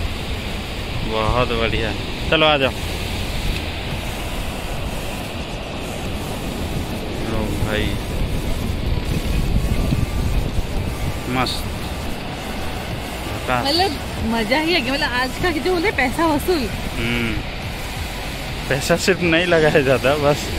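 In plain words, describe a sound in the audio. Ocean waves wash steadily onto a beach.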